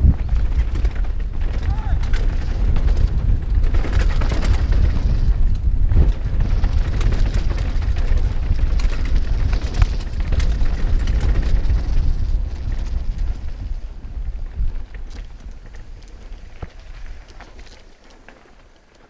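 Wind rushes loudly past a helmet.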